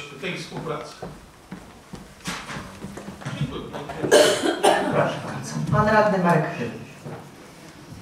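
A middle-aged man speaks with animation into a microphone in a large hall.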